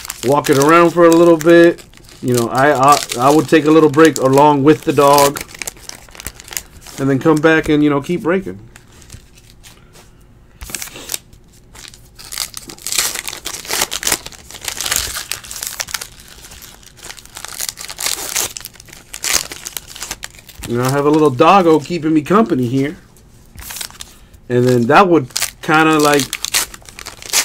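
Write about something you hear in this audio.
Foil wrappers crinkle and tear open.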